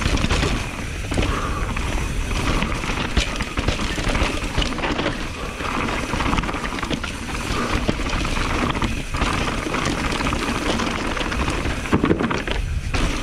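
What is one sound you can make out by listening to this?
A bicycle frame and chain clatter over bumps.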